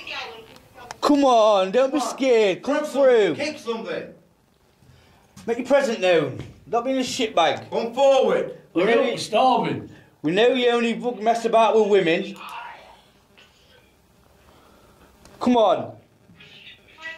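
A young man talks excitedly close by, his voice echoing in an enclosed space.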